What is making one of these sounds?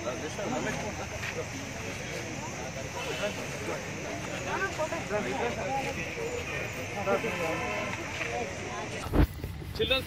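A crowd of men and women talk over one another outdoors.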